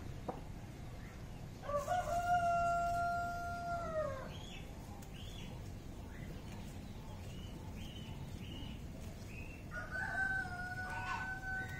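Dry plant stems rustle and crackle as hands pull at them.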